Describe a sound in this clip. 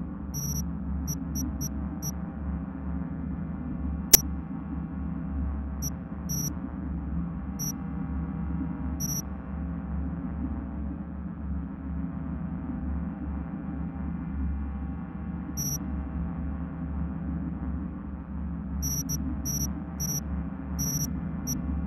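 Short electronic menu beeps chirp as options are selected.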